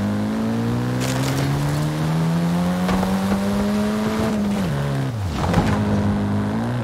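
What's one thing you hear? Tyres thump and scrape over bumps.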